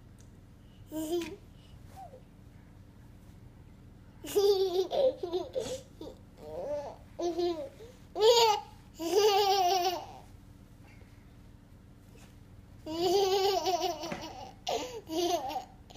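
A toddler laughs and squeals with delight close by.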